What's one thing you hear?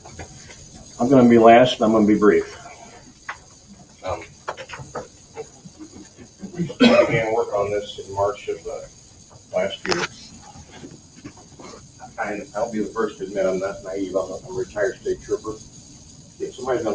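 A man speaks nearby in a roomy space.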